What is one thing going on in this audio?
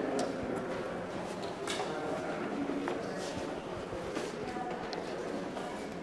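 Footsteps climb stone stairs in an echoing stairwell.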